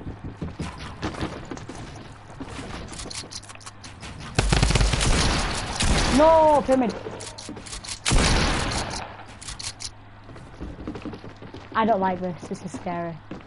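Game sounds of walls being built clatter in quick bursts.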